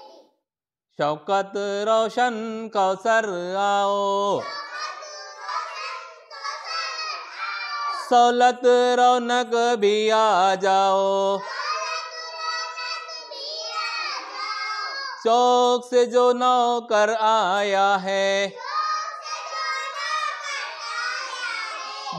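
A middle-aged man chants a rhyme in a sing-song voice close to a microphone.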